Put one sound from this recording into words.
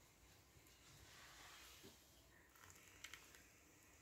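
Tea trickles from a tap into a cup.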